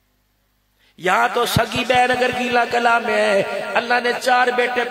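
A man chants loudly through a microphone and loudspeakers.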